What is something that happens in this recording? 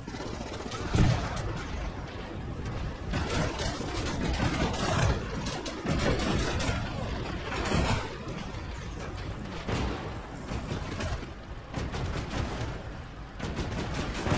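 A field gun fires with loud, sharp booms.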